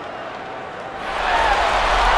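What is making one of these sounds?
A crowd's cheering swells loudly.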